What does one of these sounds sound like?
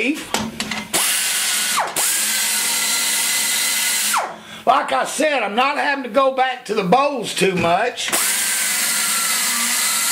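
A small air-powered grinder whirs with a loud, steady hiss.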